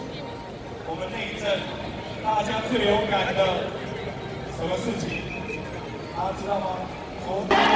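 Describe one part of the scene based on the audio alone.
A man speaks nearby.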